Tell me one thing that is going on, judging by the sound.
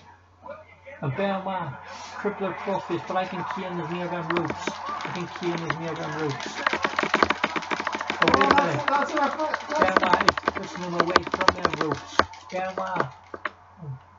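Thuds and slams from a wrestling video game play through a television speaker.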